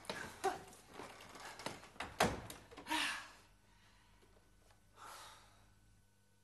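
A middle-aged woman laughs loudly and heartily.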